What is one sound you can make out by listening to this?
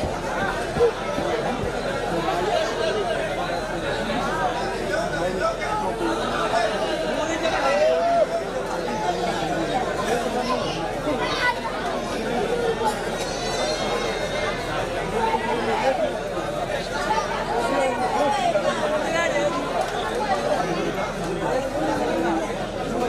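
A large crowd chatters and shouts loudly all around.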